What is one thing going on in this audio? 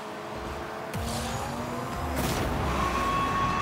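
A goal explosion booms.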